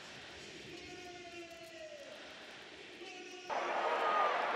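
A large stadium crowd chants and whistles in the distance.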